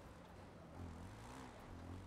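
An off-road buggy engine idles and revs.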